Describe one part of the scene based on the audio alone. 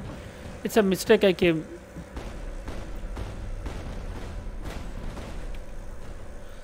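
A robot's beam weapon fires with a low, steady rumble.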